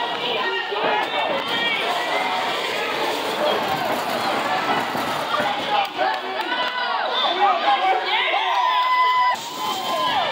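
A crowd of people chatters and cheers loudly indoors.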